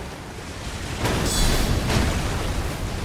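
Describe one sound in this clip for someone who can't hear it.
A heavy weapon slams down with a splashing crash.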